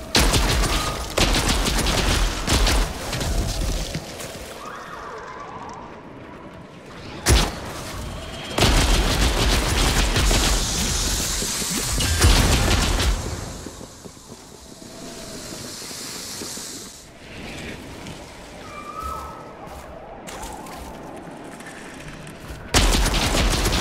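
Rifle shots crack loudly, one after another.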